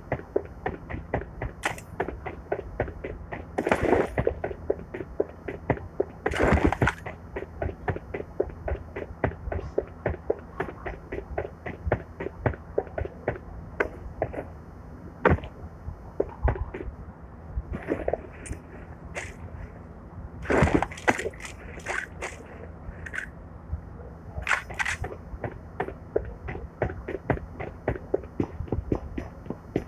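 Quick footsteps run steadily on hard ground.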